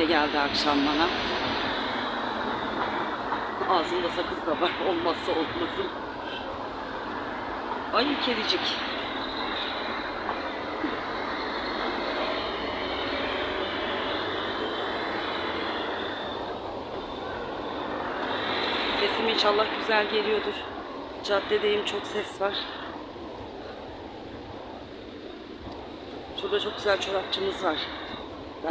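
Outdoors, a steady noise of wind and street traffic goes on.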